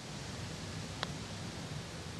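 A golf club strikes a ball with a short, crisp click.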